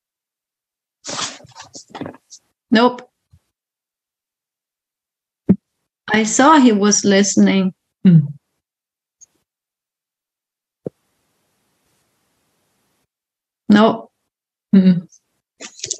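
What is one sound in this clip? A middle-aged woman speaks in short bursts over an online call.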